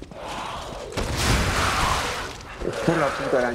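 A sword clangs as it strikes.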